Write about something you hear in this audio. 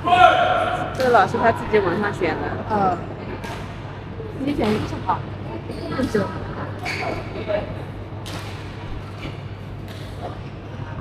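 Shuttlecocks are struck with sharp smacks that echo through a large hall.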